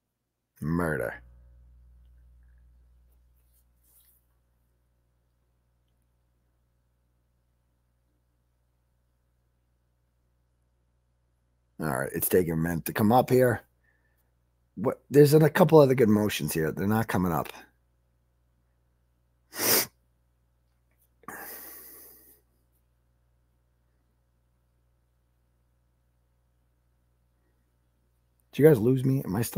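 A man speaks calmly and close into a microphone, in short bursts with long pauses.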